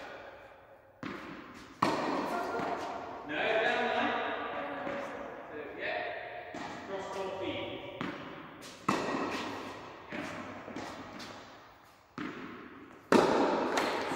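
A tennis racket strikes a ball with sharp pops in a large echoing hall.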